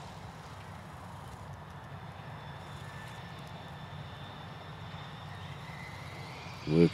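A tractor engine hums steadily in the distance.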